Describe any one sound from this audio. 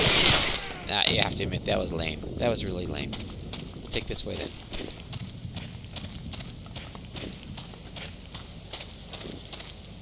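Footsteps crunch steadily through dry leaves and grass.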